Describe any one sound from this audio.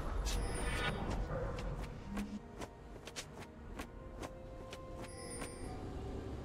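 Footsteps of a game character patter quickly on stone.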